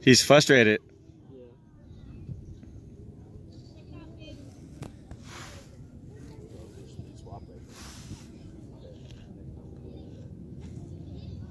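Children and adults call out faintly in the distance across an open field.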